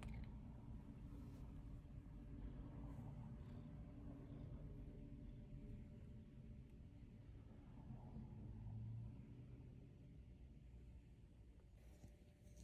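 A cat purrs softly close by.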